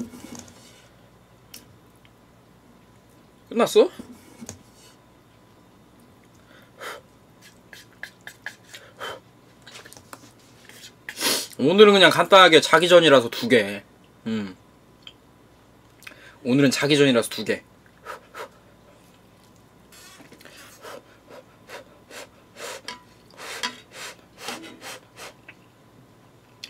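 A young man slurps noodles loudly.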